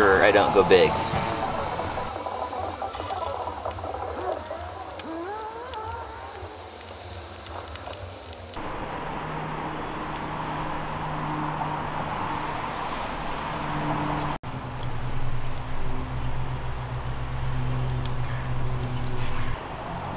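A small wood fire crackles.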